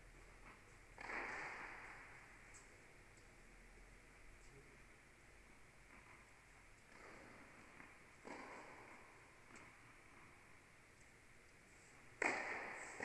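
A tennis ball is struck hard with a racket, echoing through a large indoor hall.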